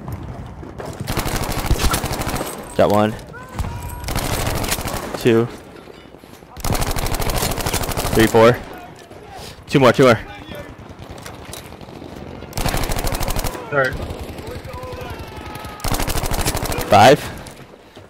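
Gunfire rattles in rapid bursts, close by.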